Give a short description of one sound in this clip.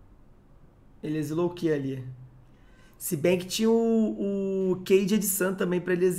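A young man speaks with animation through a headset microphone.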